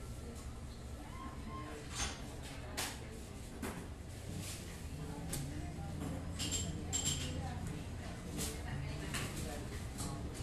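A crowd of adults murmurs and chats indistinctly nearby.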